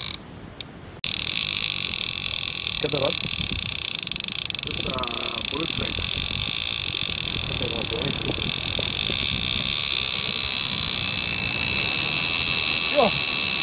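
A fishing reel's drag buzzes steadily up close.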